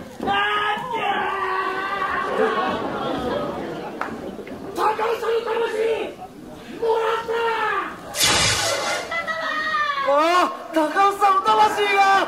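A young woman shouts loudly in an echoing hall.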